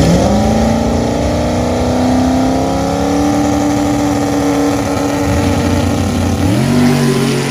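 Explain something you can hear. A loud car engine revs hard and roars up close.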